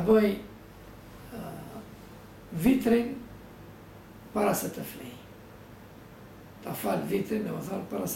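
An elderly man speaks calmly and slowly, close by, with pauses between phrases.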